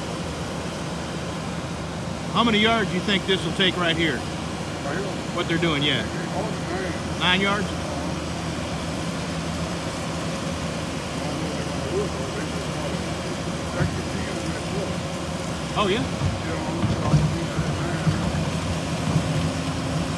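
A tracked loader's diesel engine rumbles steadily nearby.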